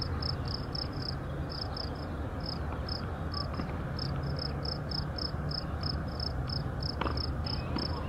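A tennis ball is struck with a racket in the distance.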